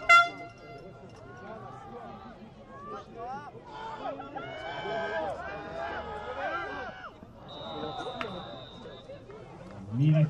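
A crowd cheers and shouts from the sidelines at a distance.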